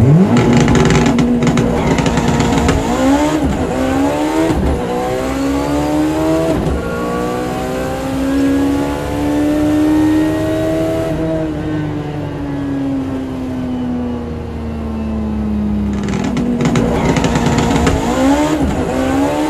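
A car engine roars loudly, revving up through the gears as the car accelerates hard.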